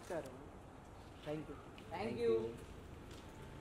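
A young woman talks on a phone nearby.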